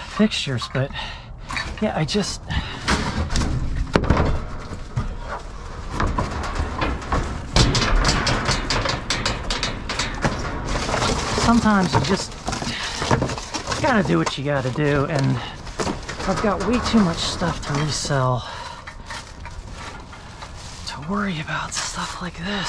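Cardboard boxes scrape and thump as they are shifted by hand.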